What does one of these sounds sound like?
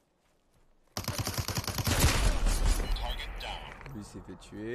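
Gunfire from a video game rattles in rapid bursts.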